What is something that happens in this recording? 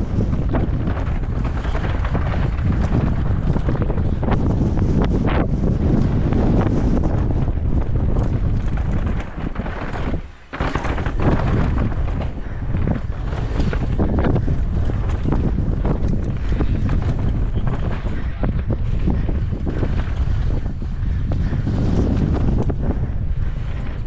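Wind rushes and buffets loudly past a fast-moving rider.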